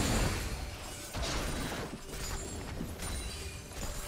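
Electronic spell and hit sound effects ring out in short bursts.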